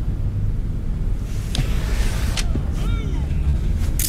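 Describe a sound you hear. A sliding door opens.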